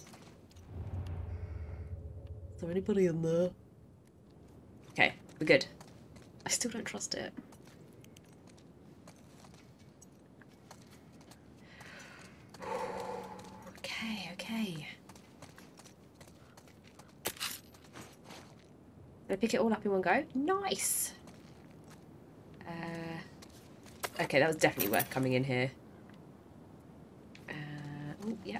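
A young woman speaks close to a microphone, calmly and in short bursts.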